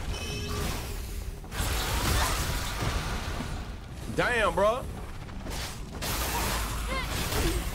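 Loud explosions boom and crackle with fire.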